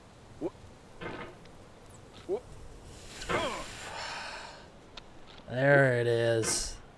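A young woman talks and groans with animation close to a microphone.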